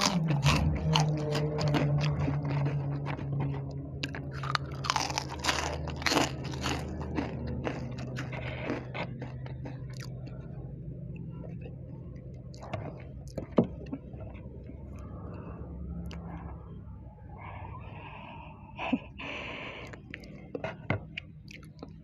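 Crisp snacks rustle and crackle as a woman handles them.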